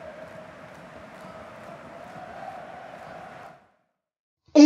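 A stadium crowd murmurs steadily in the distance.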